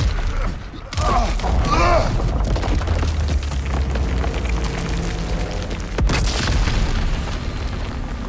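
A huge stone statue crashes down with a deep rumble.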